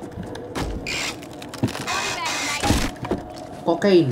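A wooden crate lid scrapes open.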